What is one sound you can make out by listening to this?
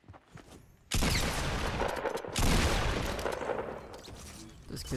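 Gunfire bursts loudly in a video game.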